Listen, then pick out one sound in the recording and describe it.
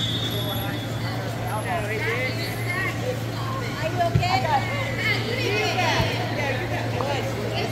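Wheelchair tyres squeak sharply on a polished floor in a large echoing hall.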